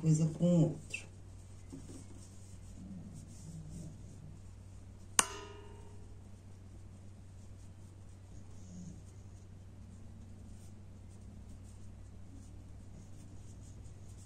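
Fabric rustles softly as hands fold it.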